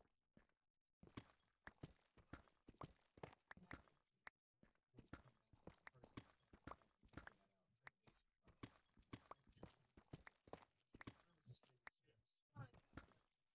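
A pickaxe chips rapidly at stone, with quick dry knocks.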